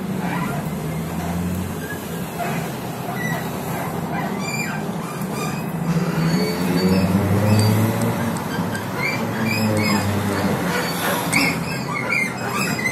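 A bus engine hums and rumbles steadily from inside.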